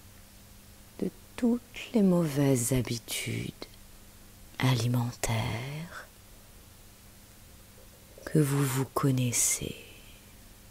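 A woman speaks softly and slowly, close by, with pauses.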